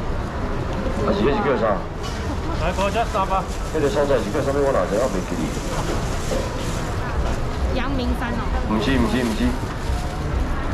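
A man speaks nearby in a lively, calling voice.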